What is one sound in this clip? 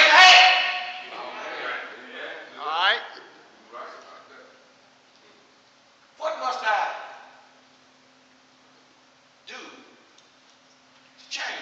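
A man preaches with animation through a microphone in an echoing hall.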